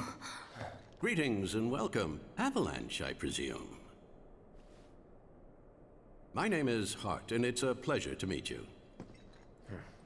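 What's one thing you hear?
An elderly man speaks politely and calmly.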